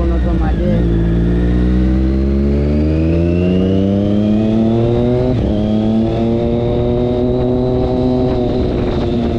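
A motorcycle engine revs up and rises in pitch as it accelerates, shifting gears.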